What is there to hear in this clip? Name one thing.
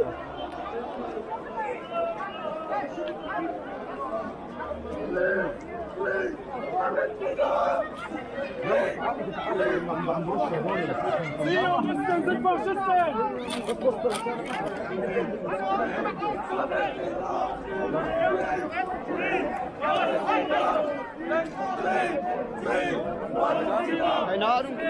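A large crowd of men and women chatters and shouts outdoors.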